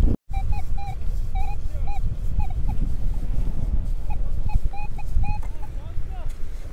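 A metal detector gives quick, short, high beeps.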